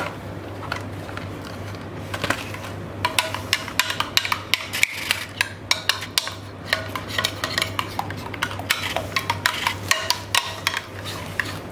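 A metal spoon scrapes and clinks against a glass bowl.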